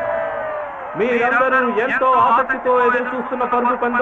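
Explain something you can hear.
A man announces through a loudspeaker with excitement.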